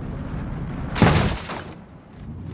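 A car crashes hard onto the ground with a loud metallic bang.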